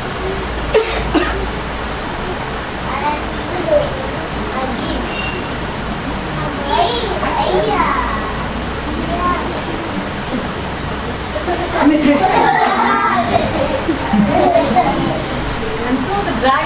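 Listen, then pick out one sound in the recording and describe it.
A woman tells a story with animated, playful voices.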